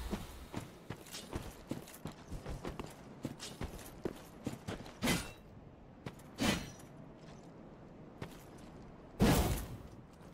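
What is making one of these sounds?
A warrior swings a weapon with sharp whooshes.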